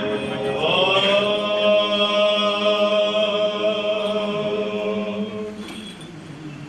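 Men chant in long, sustained tones in a reverberant hall.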